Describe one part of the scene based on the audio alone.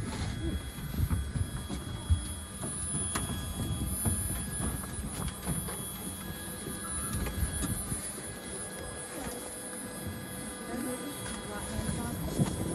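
Footsteps clank on a metal stairway.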